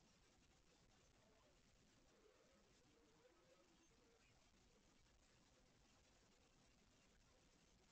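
Cats scuffle softly on a blanket.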